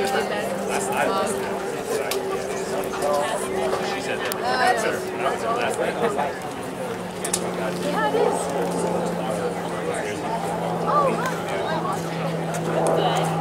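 Hands slap together in quick high fives.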